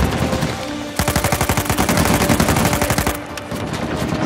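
A pistol fires a rapid string of shots.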